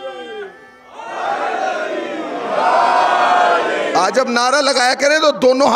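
A crowd chants loudly in unison.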